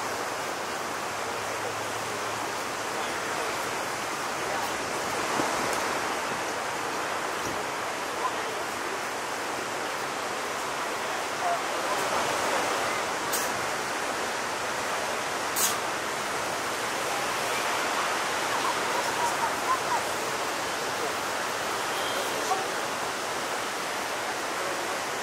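Waves crash and roar steadily into white surf.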